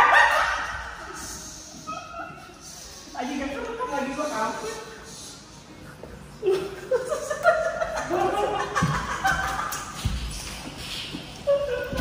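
Several men laugh loudly nearby.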